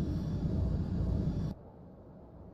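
A spaceship engine roars loudly and then cuts off.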